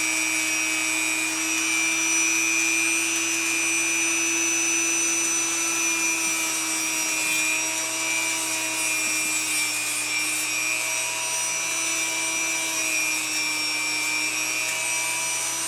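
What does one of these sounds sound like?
A small rotary grinder whines steadily while filing a claw.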